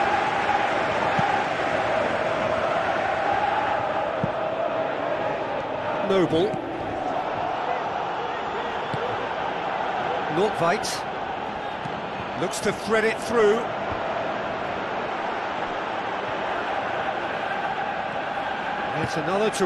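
A large stadium crowd murmurs and chants steadily.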